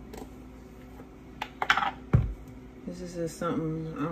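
A lid clicks on a plastic jar.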